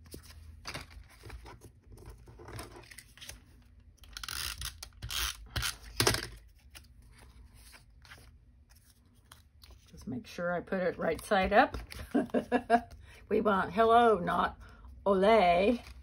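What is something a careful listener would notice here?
Paper cards rustle and slide against each other under a hand.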